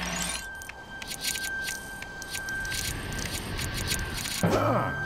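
Small coins jingle and clink as they are picked up.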